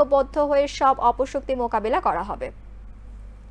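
A woman speaks briskly and clearly, close to a microphone.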